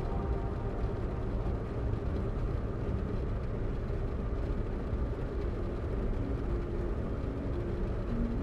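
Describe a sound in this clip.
A sports car engine rumbles steadily as the car drives along a road.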